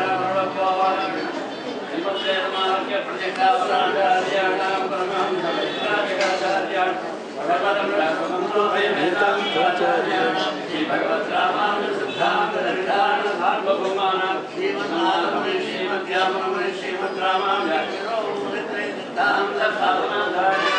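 An elderly man and other men chant steadily together nearby.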